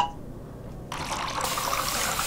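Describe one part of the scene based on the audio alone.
A fire extinguisher sprays with a steady hiss.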